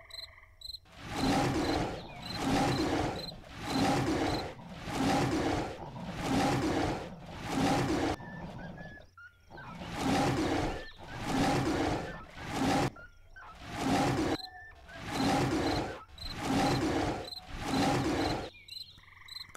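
A big cat snarls and growls again and again while fighting.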